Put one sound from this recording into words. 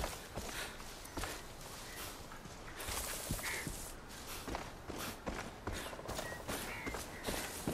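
Footsteps crunch and rustle through tall grass at a steady walking pace.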